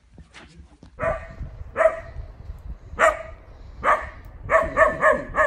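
A young dog barks repeatedly outdoors.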